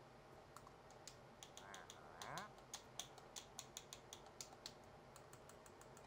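Menu buttons click rapidly.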